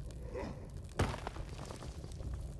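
Stone cracks and crumbles with a sharp crash.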